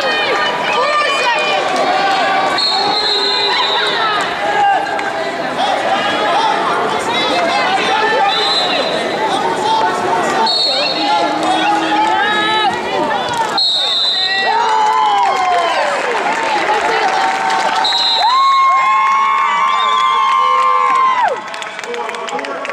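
A crowd shouts and cheers loudly in a large echoing arena.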